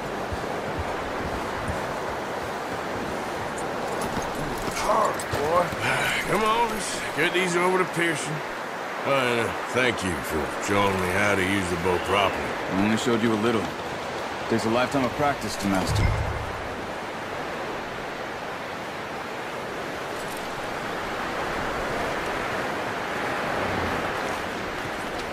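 Wind blows steadily outdoors in a snowstorm.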